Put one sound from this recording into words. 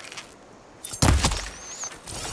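An arrow is loosed from a bow with a sharp twang.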